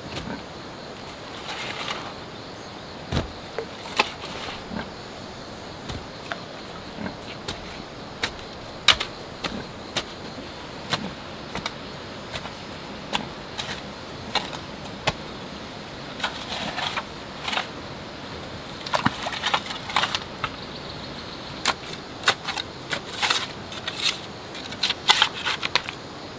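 A hoe chops and scrapes into dry soil.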